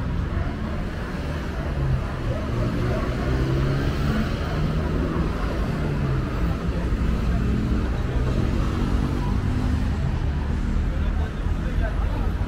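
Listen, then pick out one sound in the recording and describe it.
Road traffic hums steadily nearby.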